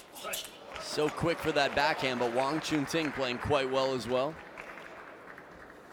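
A crowd applauds and cheers in a large hall.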